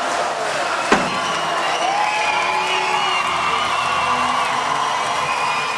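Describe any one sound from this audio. A large crowd cheers and roars in a big hall.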